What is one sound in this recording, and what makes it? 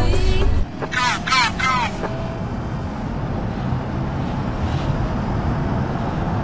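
A van engine hums steadily as the van drives along.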